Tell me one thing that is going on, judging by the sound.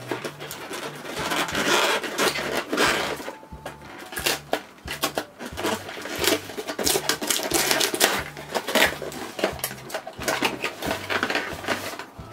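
Cardboard packaging rustles and knocks as hands handle a box.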